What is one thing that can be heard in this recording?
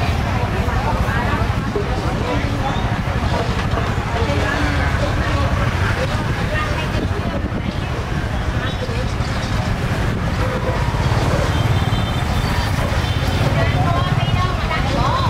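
A motorbike engine idles and rumbles close by.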